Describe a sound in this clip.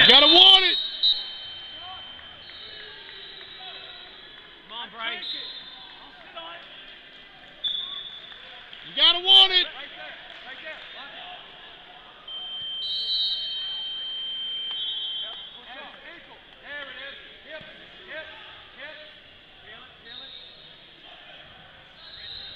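Men shout loudly from the sidelines in a large echoing hall.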